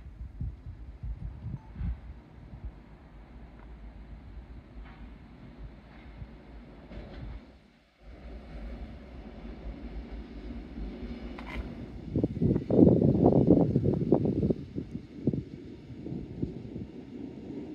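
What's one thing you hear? A train rumbles and rattles along the tracks in the distance.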